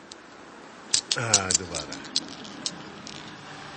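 Glass marbles click against each other.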